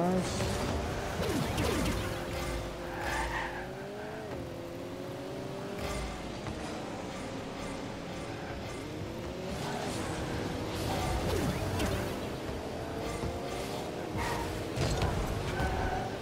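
A racing car engine hums steadily and revs up and down.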